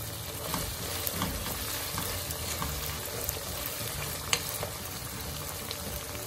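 A spatula scrapes and knocks against a pan.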